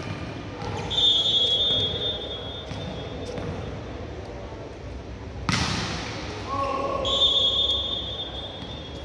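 A referee's whistle blows sharply in a large echoing hall.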